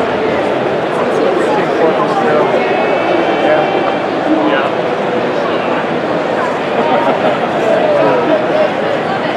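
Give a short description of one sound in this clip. A crowd of many people chatters loudly in a large echoing hall.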